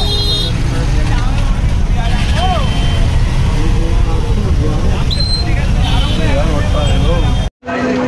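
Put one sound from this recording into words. Horns honk in the street.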